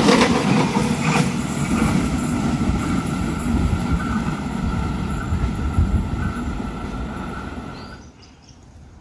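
A train rumbles along the tracks close by.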